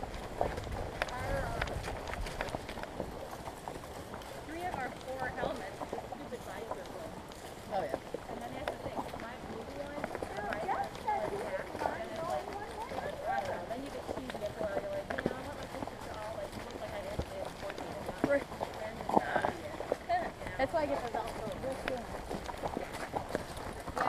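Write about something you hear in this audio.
Horse hooves crunch and thud on dry leaves at a steady walk.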